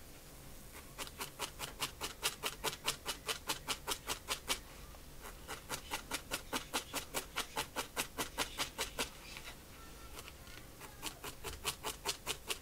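A felting needle stabs rapidly into wool felt on a foam pad.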